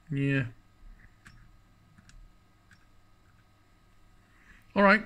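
Buttons click softly on a device.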